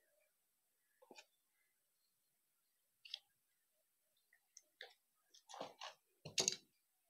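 Stiff paper rustles and crinkles as it is folded by hand.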